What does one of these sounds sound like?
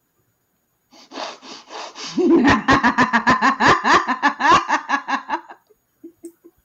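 A group of people laugh through an online call.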